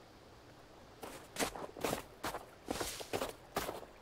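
Footsteps crunch through snow at a steady walking pace.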